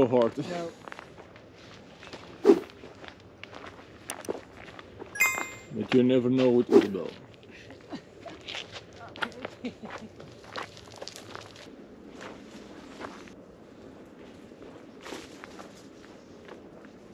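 Footsteps crunch on gravel and dry leaves.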